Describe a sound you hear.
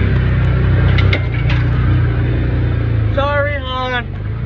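Brush and branches scrape against the vehicle.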